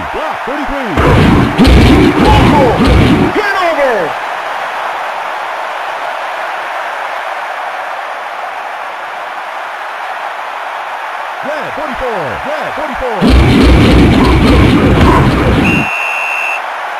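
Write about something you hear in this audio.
Football players crash together in tackles with heavy thuds.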